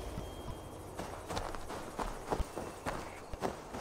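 Footsteps rustle through undergrowth.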